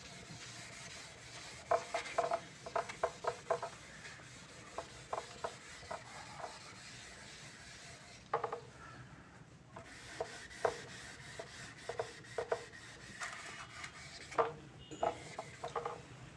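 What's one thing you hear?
An eraser rubs and squeaks against a whiteboard.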